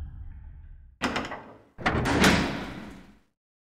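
A heavy metal door creaks open with a loud scrape.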